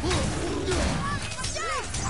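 An axe swings through the air with a whoosh.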